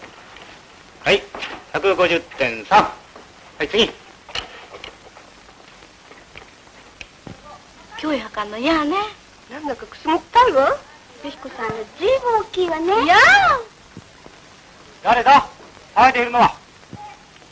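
A man speaks calmly on an old film soundtrack.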